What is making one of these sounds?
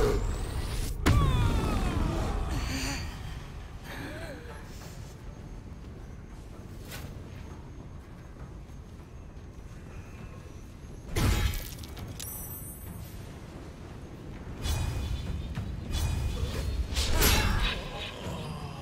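Weapons strike and spells burst in a fight.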